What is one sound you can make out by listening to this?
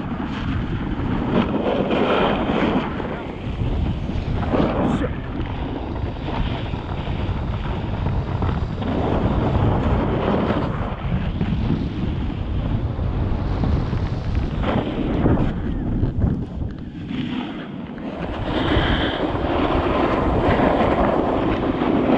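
A snowboard scrapes and hisses across packed snow.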